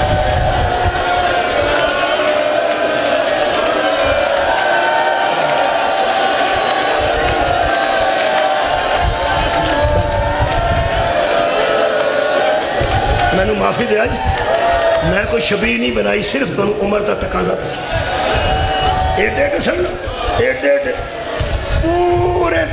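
A man recites loudly through a microphone, his voice echoing in a hall.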